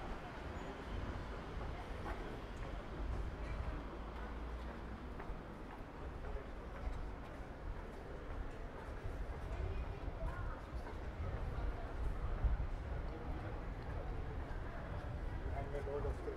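Footsteps tap on a pavement close by.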